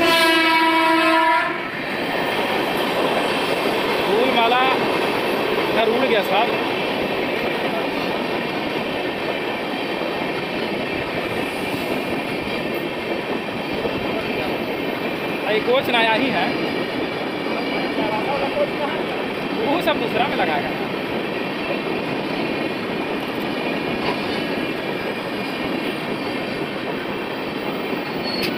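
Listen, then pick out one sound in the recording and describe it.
A passing train rumbles and clatters steadily along the rails.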